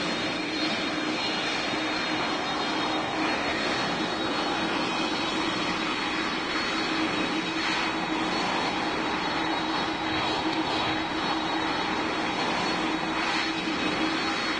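Jet engines hum steadily as an airliner taxis.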